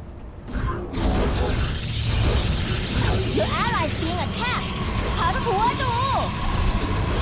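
Electronic game sounds hum and chime steadily.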